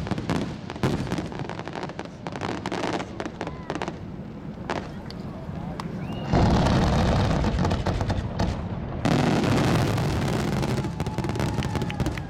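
Fireworks crackle and pop rapidly overhead.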